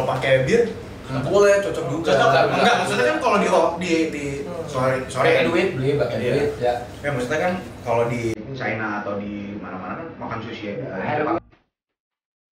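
Several young men talk together close by, with animation.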